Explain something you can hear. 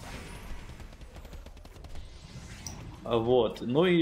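Magic spells crackle and whoosh in a battle.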